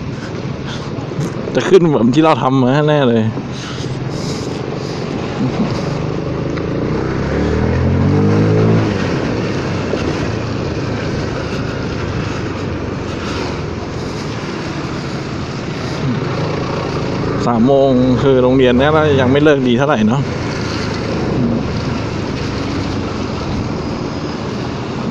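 A motorcycle engine hums and revs up now and then.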